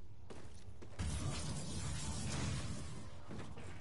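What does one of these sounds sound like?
An explosion roars loudly and rumbles away.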